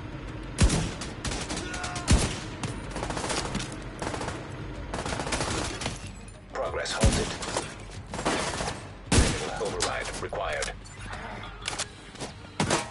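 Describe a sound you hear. Gunfire rattles in bursts nearby.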